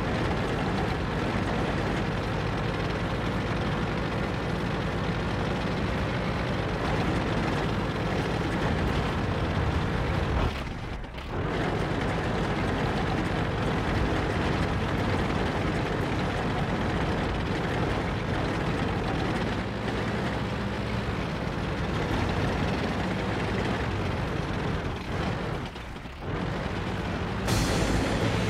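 A tank engine rumbles steadily as the tank drives along.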